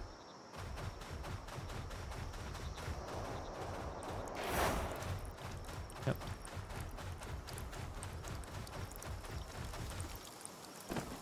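A large flying creature rushes along with a deep, steady rumble.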